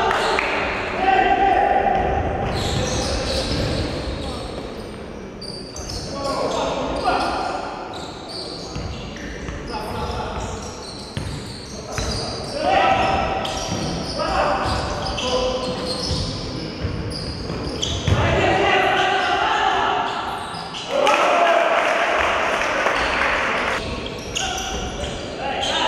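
Young men shout to each other across an echoing hall.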